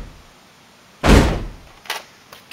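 A toy dart blaster fires with a sharp puff.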